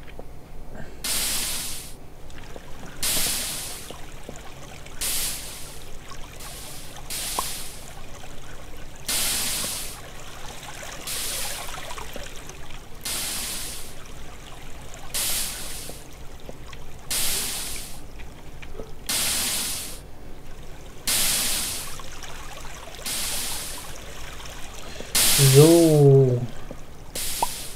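Water splashes in short, repeated bursts about every two seconds.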